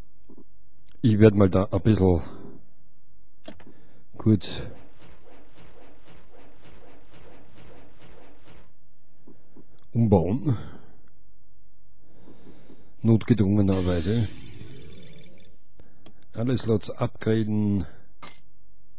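A middle-aged man speaks with animation, close to a studio microphone.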